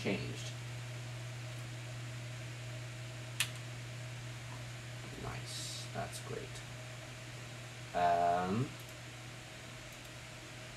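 A computer hums steadily and low.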